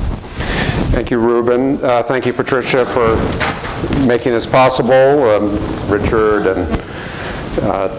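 An older man speaks into a microphone.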